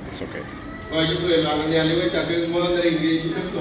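A man speaks steadily into a microphone, heard through loudspeakers in a large room.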